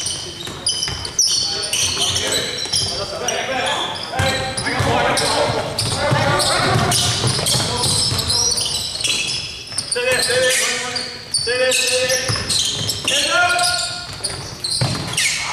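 Young men shout and call out to one another across an echoing gym.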